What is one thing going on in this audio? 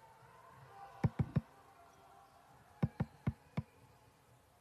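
A basketball bounces hard on a wooden floor.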